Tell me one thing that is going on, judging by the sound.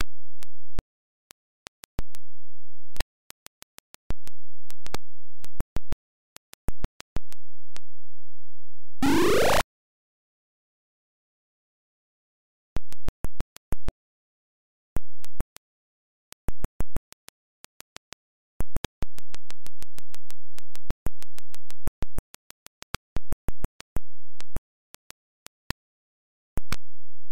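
Short electronic beeps tick.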